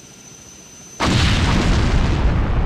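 A huge explosion roars.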